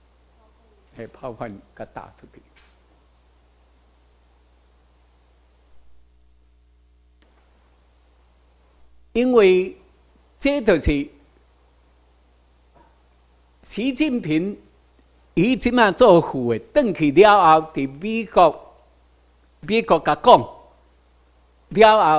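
An elderly man speaks calmly into a microphone over a loudspeaker, with pauses.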